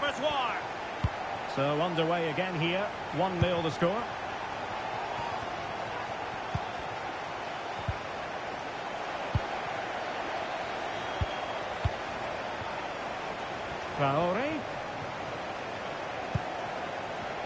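A football is kicked with dull thumps now and then.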